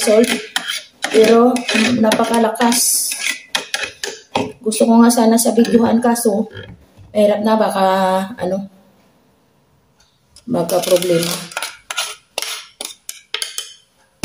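A spoon scrapes against a plastic juicer.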